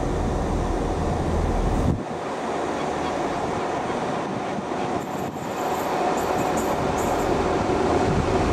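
A diesel train approaches with a growing engine rumble.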